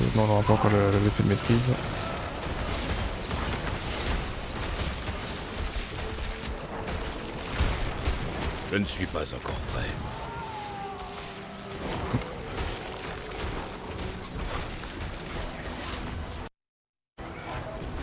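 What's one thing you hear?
Game combat effects crackle and crash.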